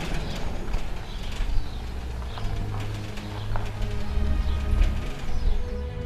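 A sliding gate rumbles along its track.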